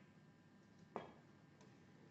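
A snooker cue strikes the cue ball with a sharp click.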